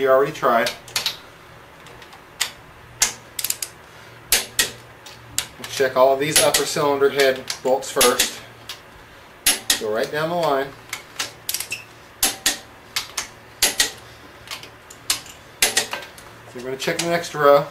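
A wrench ratchets with quick metal clicks.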